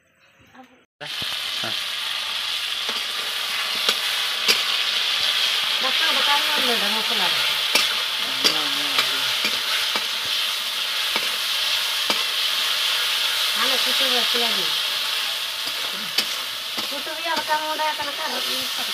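A fire crackles under a pan.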